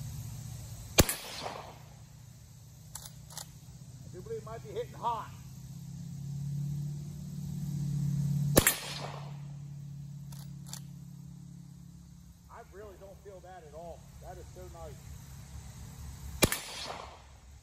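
A rifle fires sharp, loud shots that echo across open ground.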